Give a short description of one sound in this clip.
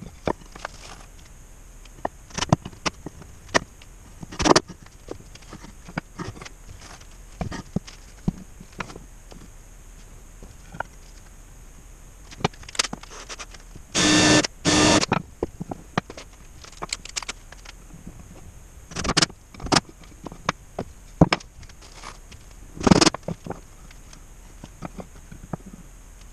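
Wooden boards knock and clatter on a workbench.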